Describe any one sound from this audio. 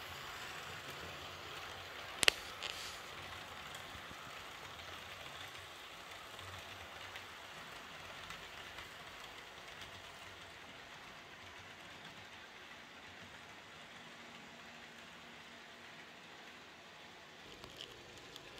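A model electric train rumbles along metal track.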